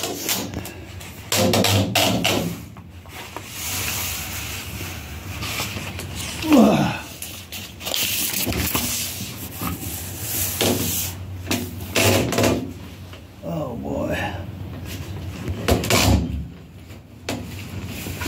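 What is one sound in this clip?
Thin sheet metal rattles and wobbles.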